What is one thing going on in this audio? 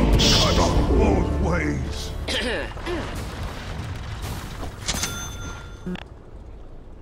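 Game battle sounds clash and burst with spell effects.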